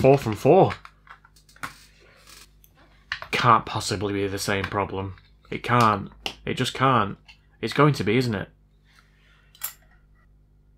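Small plastic parts click and clatter as they are handled.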